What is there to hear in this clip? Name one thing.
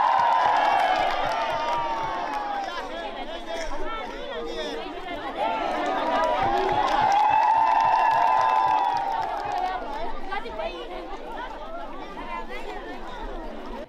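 Hands clap in a steady rhythm among a crowd.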